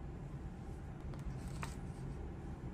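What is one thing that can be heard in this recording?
A paper page turns with a soft rustle.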